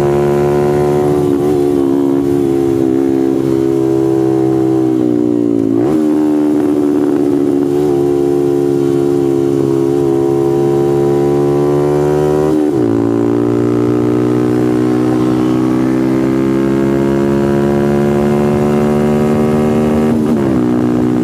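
A motorcycle engine roars loudly at high revs, dropping in pitch as the rider shifts gears.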